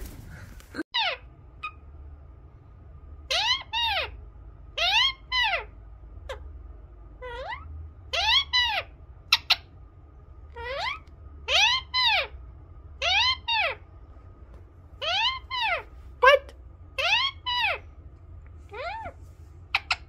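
A parrot squawks close by in short, repeated, rising and falling calls.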